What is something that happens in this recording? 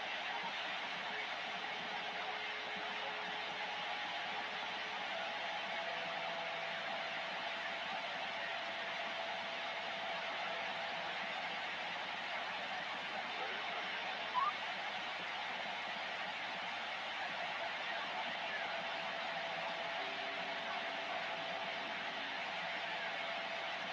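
A radio receiver hisses with steady static.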